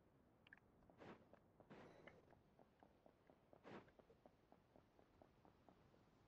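Light footsteps patter quickly on a stone floor.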